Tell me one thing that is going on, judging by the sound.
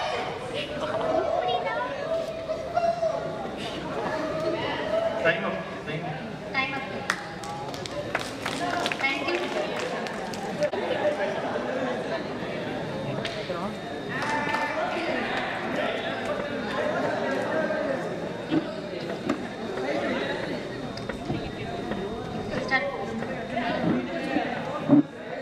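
A young woman speaks into a microphone over loudspeakers in a large echoing hall.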